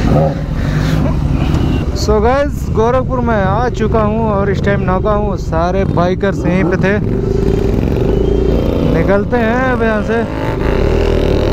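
Motorcycle engines rev loudly and repeatedly nearby.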